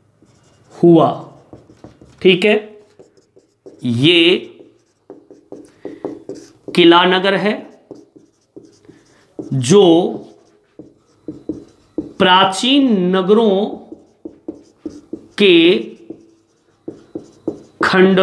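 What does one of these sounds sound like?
A man speaks clearly and steadily, close to a microphone.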